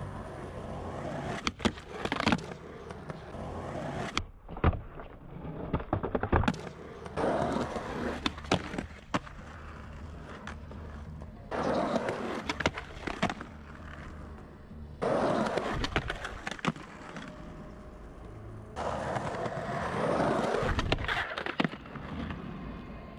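Skateboard wheels roll loudly over rough concrete.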